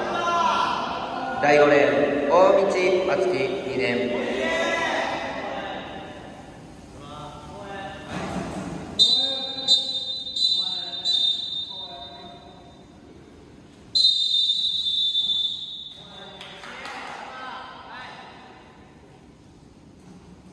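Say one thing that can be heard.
Young men talk nearby in an echoing hall.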